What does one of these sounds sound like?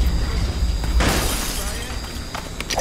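Plastic pieces clatter and smash apart.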